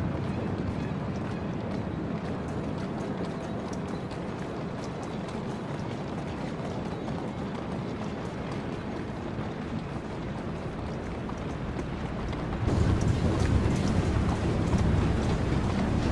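Water laps steadily against a stone embankment.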